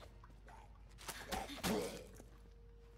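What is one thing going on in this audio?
A blade strikes a body with a heavy thud.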